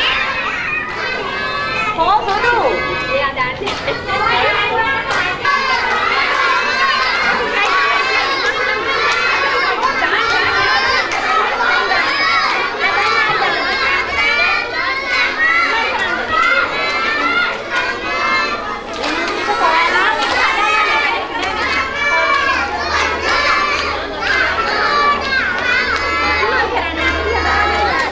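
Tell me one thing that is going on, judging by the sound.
Young children chatter and call out nearby in a large echoing hall.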